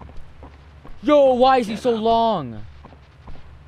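A young man cries out loudly in alarm into a microphone.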